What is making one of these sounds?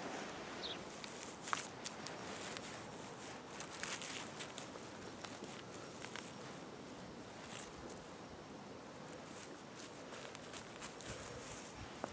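Dry pine needles and moss rustle and crackle under a hand.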